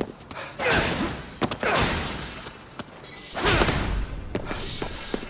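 Loud magical whooshes burst out in quick swells.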